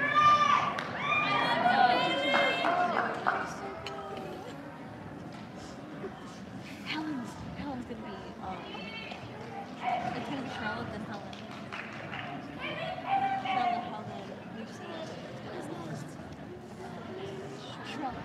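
A crowd of audience members chatters in a large echoing hall.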